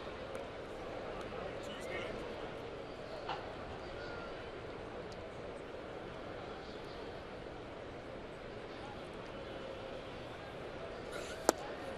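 A crowd murmurs steadily in a large open stadium.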